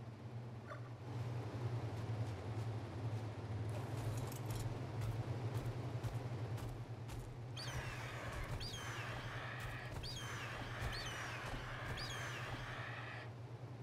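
Large wings flap with a rushing whoosh.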